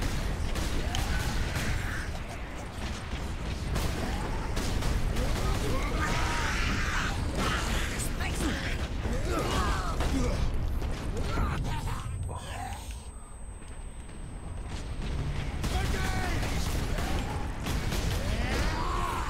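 Creatures grunt and roar in combat.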